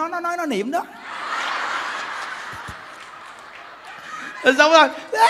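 A crowd of women laughs together.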